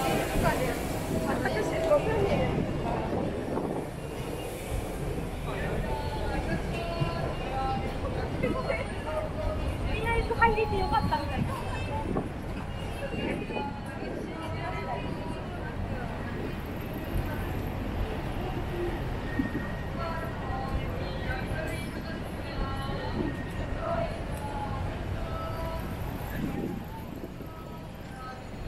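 Footsteps shuffle on pavement close by.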